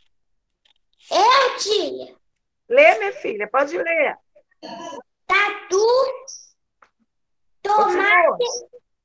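A young girl speaks over an online call.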